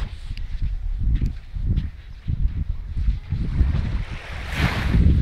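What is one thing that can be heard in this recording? Small waves lap gently at a sandy shore.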